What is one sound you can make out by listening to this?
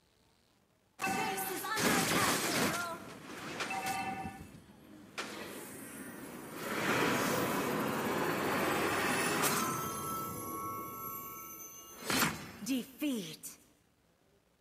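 Game sound effects of spells and blows play loudly.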